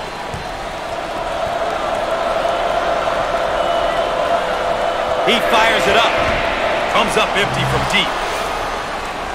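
A crowd roars loudly as a shot is taken.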